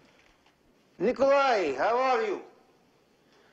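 A man speaks on a telephone.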